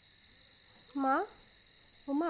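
A young woman sobs and cries out in distress nearby.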